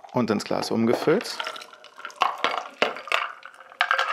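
A liquid pours into a glass.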